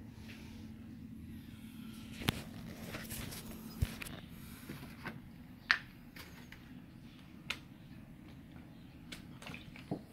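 A plastic jug knocks and crinkles as it is handled.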